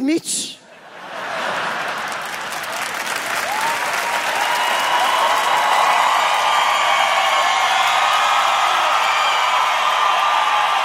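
A large audience cheers and applauds loudly.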